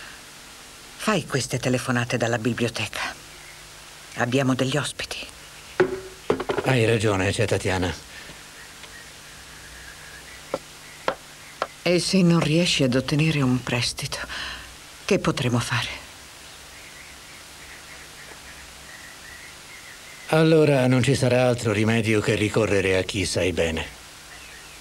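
A middle-aged man speaks in a low, stern voice, close by.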